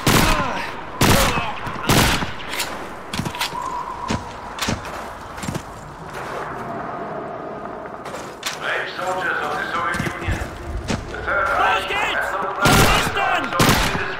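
A submachine gun fires loud, sharp bursts of shots.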